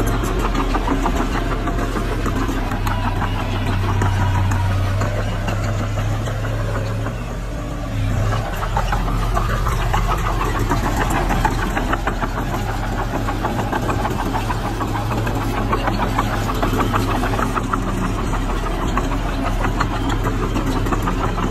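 A bulldozer's metal tracks clank and squeak as it moves.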